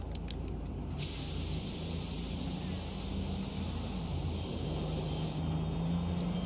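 A spray can hisses steadily.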